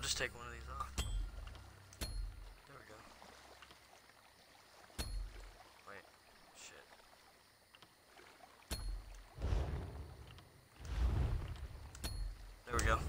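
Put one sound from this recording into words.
Short menu clicks sound now and then.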